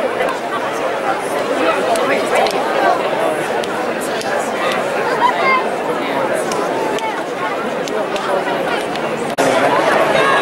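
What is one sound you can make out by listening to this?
A large outdoor crowd chatters and murmurs all around.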